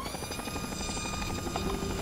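A small hovering robot hums with a steady buzz.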